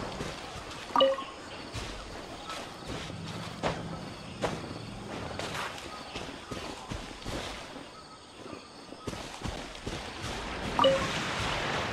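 A bright chime rings out as an item is picked up.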